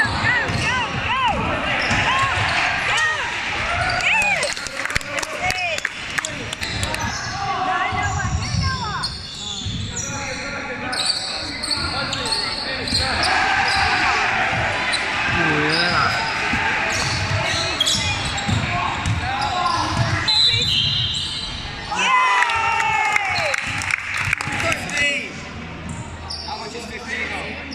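Teenage boys shout to one another across the hall.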